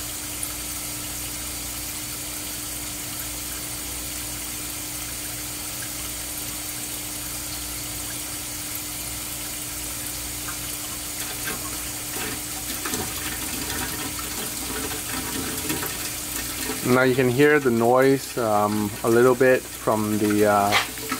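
Water gurgles and trickles through a pipe.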